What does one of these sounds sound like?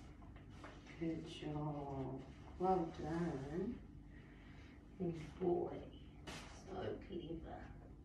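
A woman talks to a dog in a high, animated voice.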